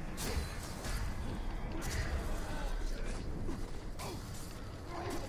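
Swords clash and slash in quick, sharp hits.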